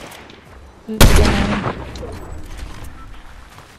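A gun fires a loud shot that echoes away.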